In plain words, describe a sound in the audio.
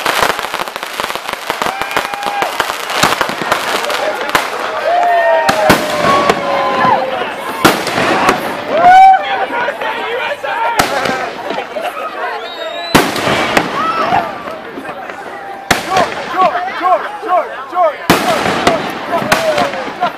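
Fireworks crackle and fizz in the air.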